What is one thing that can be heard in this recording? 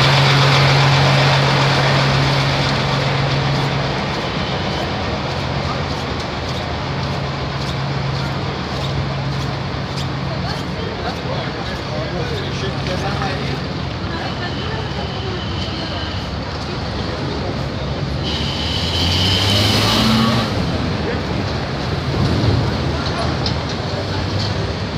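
Street traffic hums steadily outdoors.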